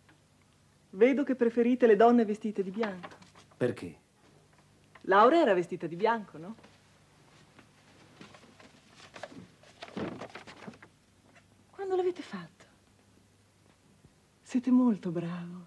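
A woman speaks with feeling close by.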